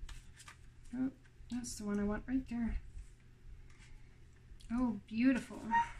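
Playing cards shuffle and rustle in someone's hands.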